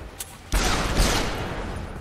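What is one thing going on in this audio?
Gunshots fire in rapid bursts with ringing echoes.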